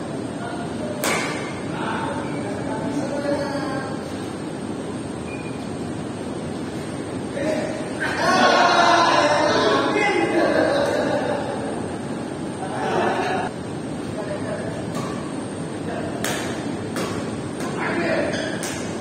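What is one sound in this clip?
Shuttlecocks are struck with rackets in sharp pops.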